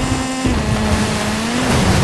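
Water splashes up under a car's tyres.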